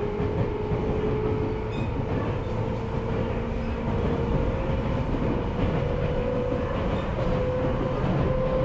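An electric train approaches on the tracks with a steady rumble.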